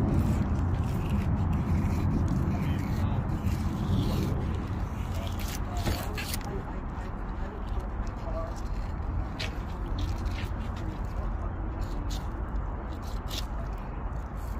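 A knife scrapes scales off a fish with short rasping strokes.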